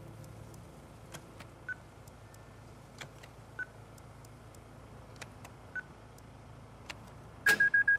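Keypad buttons click and beep as they are pressed.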